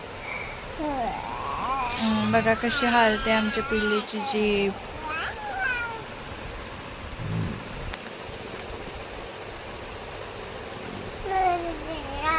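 A baby coos and babbles.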